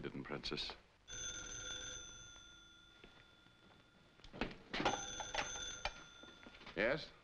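A telephone rings.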